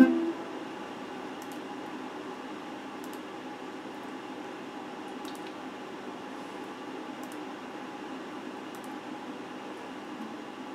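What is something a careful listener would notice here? An electric guitar is strummed quietly.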